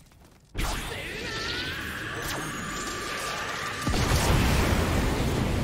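An electric blast crackles and zaps.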